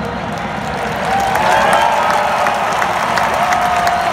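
A large crowd sings and cheers loudly, growing louder toward the end.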